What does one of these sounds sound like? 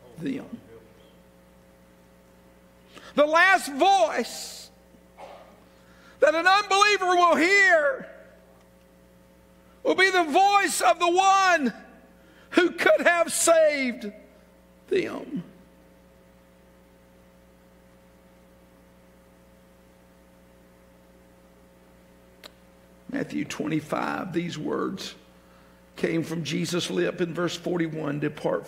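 A middle-aged man preaches with animation through a microphone.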